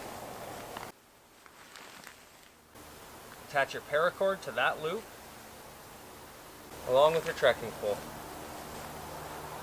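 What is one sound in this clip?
Canvas rustles as a tarp is pulled up.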